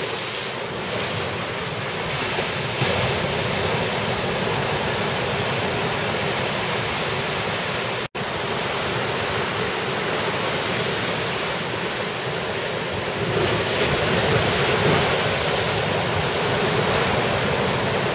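Waves break and rush steadily onto the shore outdoors.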